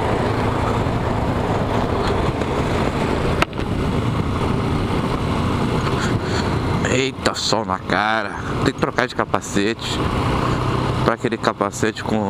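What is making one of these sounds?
Wind rushes past loudly as the motorcycle moves.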